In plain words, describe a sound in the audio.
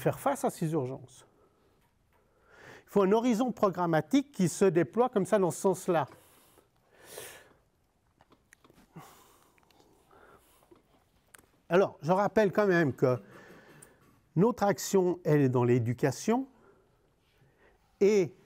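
A middle-aged man speaks calmly through a microphone, pausing now and then.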